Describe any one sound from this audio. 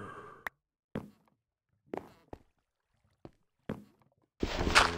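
Footsteps tap on a wooden ladder.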